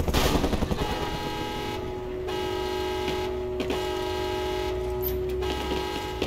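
A helicopter engine hums steadily as it winds down.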